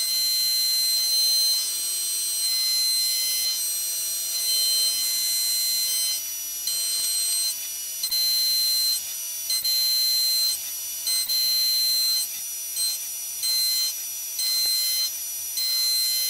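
Coolant sprays and splashes against the workpiece.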